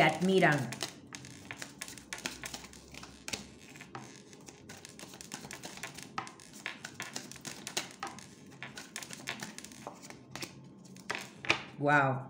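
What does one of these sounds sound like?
Playing cards riffle and slap as they are shuffled.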